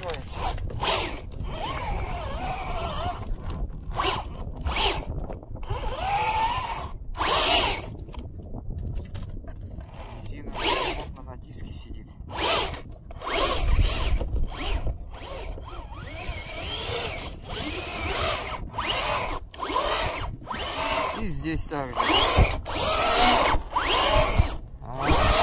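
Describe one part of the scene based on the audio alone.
A small electric motor whines as a toy truck drives.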